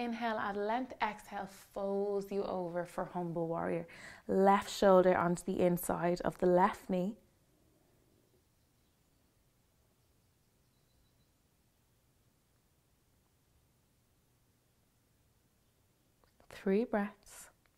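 A young woman speaks calmly and clearly, as if giving instructions close to a microphone.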